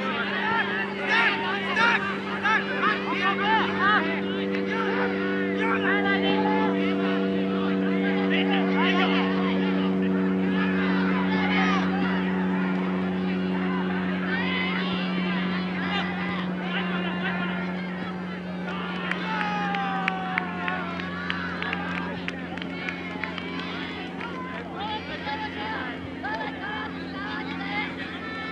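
Young men shout to each other in the distance outdoors.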